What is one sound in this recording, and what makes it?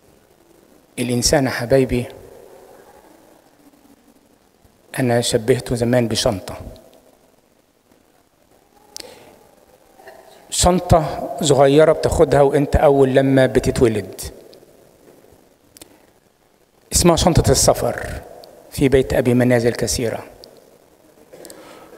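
An elderly man speaks slowly into a microphone in bursts, with echo in a large hall.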